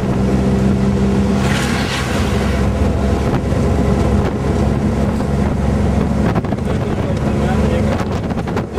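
A vehicle engine hums steadily from inside the cab while driving.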